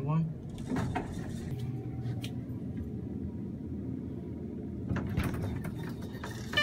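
An elevator hums and rumbles steadily as it rises.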